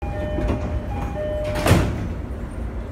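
Train doors slide shut with a thud.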